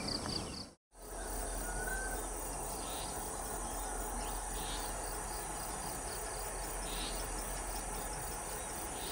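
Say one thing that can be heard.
A diesel locomotive idles with a low, steady hum.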